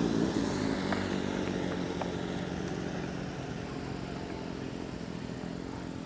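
A motorcycle engine hums in the distance and fades away.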